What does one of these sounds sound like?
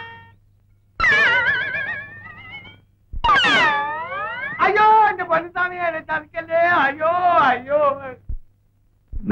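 A frightened man cries out in a high, shaky voice.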